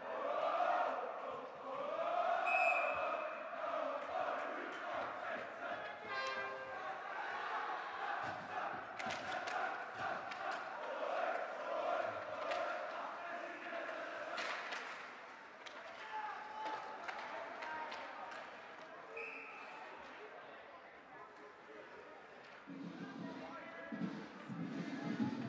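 A crowd murmurs and calls out in an echoing rink.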